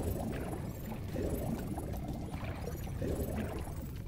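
Water bubbles and gurgles.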